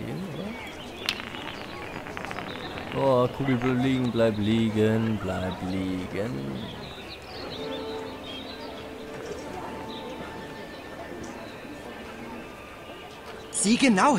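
A small ball rolls and rattles over cobblestones.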